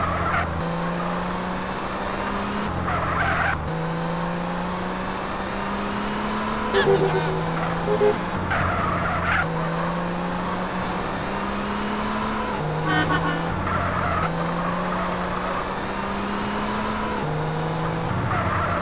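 A sports car engine revs up and shifts through the gears.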